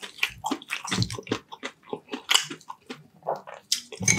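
A spoon clinks against a glass bowl.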